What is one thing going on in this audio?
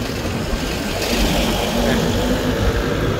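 A van passes close by with a rushing whoosh.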